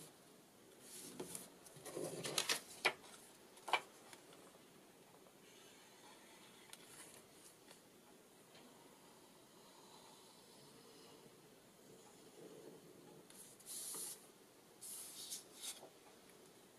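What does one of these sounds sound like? Paper rustles and slides as hands handle it.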